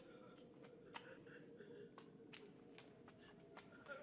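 Footsteps shuffle softly on a stone floor.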